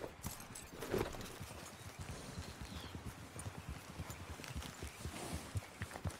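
Horse hooves thud on grass at a gallop.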